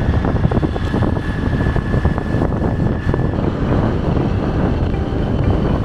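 Wind rushes loudly past a moving motorbike.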